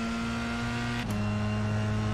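A racing car engine drops in pitch sharply as the gear shifts up.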